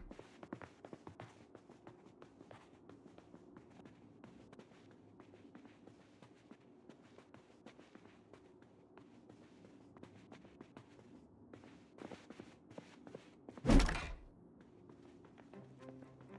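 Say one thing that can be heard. Footsteps tap across a wooden floor.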